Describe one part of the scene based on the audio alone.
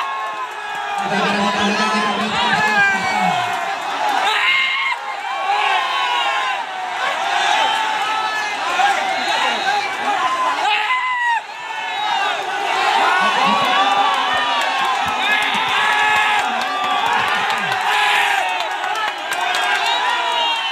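A large crowd of men shouts and clamours excitedly outdoors.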